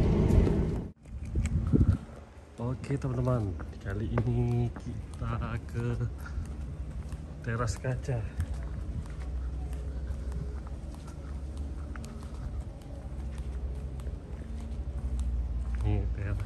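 Footsteps scuff on a rough concrete path.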